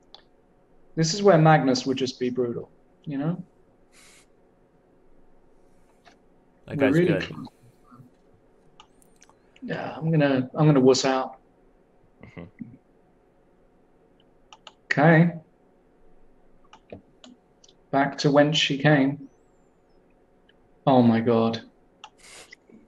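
A man talks calmly over an online call, in short bursts with pauses.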